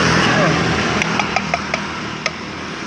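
A metal can clinks and taps.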